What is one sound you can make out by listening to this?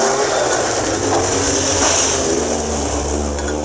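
Gravel sprays and rattles as a car speeds past.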